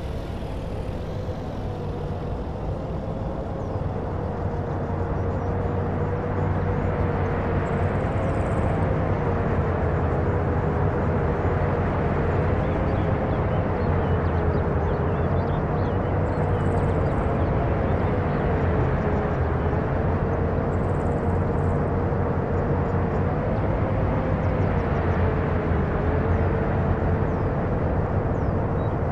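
Heavy truck engines rumble steadily.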